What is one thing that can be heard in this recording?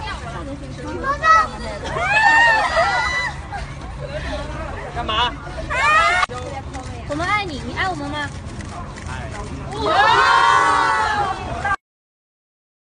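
Young women squeal and chatter excitedly close by.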